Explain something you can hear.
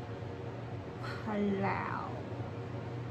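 A woman speaks briefly and quietly nearby.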